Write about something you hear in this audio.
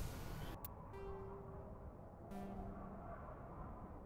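Short electronic menu beeps sound.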